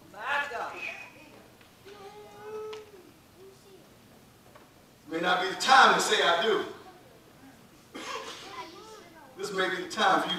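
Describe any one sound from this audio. A man preaches with animation through a microphone and loudspeakers in an echoing hall.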